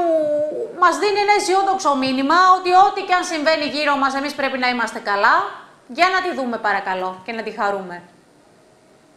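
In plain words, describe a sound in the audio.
A woman speaks with animation into a studio microphone.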